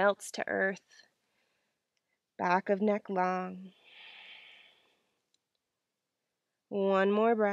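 A young woman speaks calmly, close to a microphone, in short phrases.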